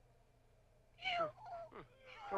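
A young woman speaks quickly.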